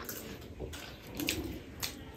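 Crisp flatbread crackles as fingers break it.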